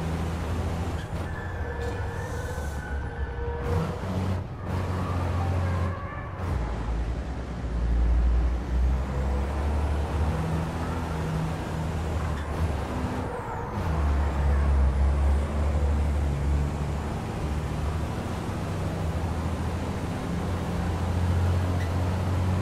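A truck engine roars steadily, its pitch rising and falling as it shifts gears.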